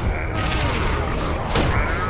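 A bright energy beam whooshes past.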